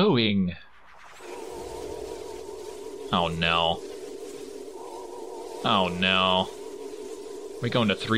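A steady, shimmering magical hum drones and whooshes.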